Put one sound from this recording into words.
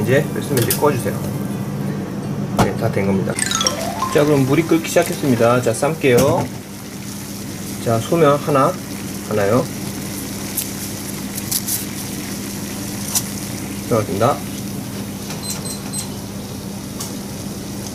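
Water bubbles and boils steadily in a pot.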